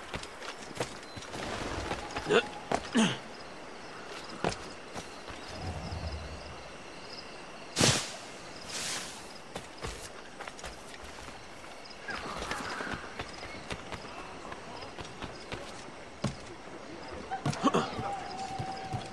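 Footsteps run quickly over grass and rock.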